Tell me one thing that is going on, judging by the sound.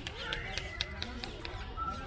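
Footsteps tap on pavement nearby.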